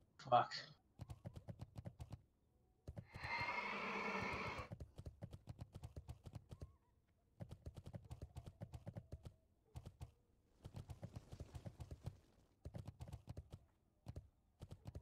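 A mount's hooves clatter along at a quick, steady gallop.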